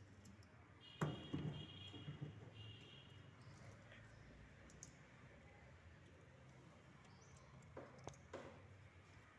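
Metal parts of a small machine knock and clank.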